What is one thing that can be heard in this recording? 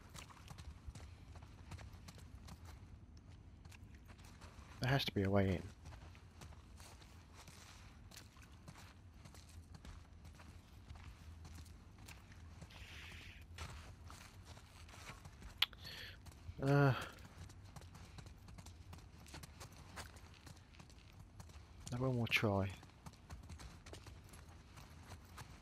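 Footsteps tread on grass and stone steps.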